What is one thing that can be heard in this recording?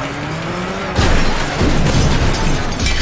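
A vehicle crashes with a loud thud.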